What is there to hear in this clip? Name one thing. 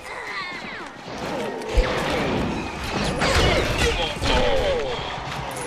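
Objects shatter with a bright crackling burst.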